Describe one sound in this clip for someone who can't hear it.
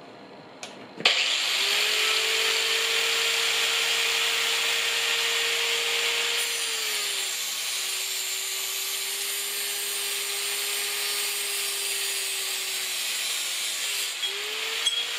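An electric cut-off saw starts up with a sudden whine and runs loudly.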